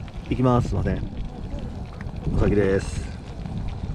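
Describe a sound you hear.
A man speaks nearby in short, lively phrases.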